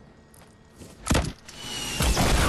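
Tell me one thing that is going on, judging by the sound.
A rifle fires a single loud shot.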